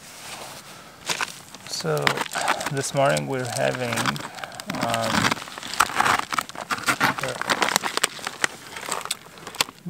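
A crinkly foil windscreen rustles and crackles as it is handled.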